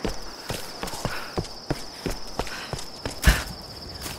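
Footsteps crunch on soft forest ground.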